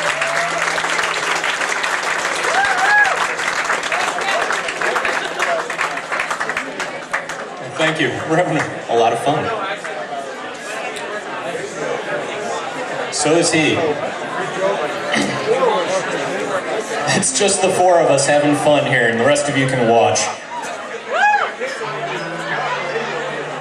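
A live rock band plays loudly through amplifiers in an echoing room.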